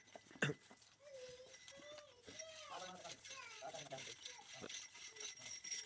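A goat bleats nearby.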